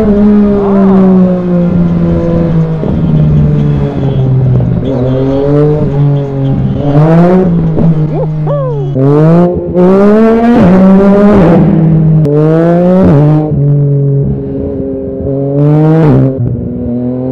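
A motorcycle engine hums steadily and revs up and down sharply.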